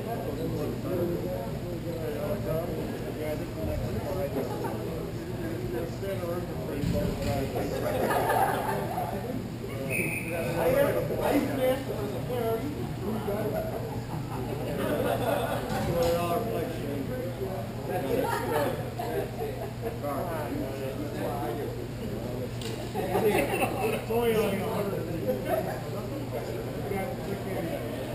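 Skate wheels roll and scrape on a hard floor in a large echoing hall.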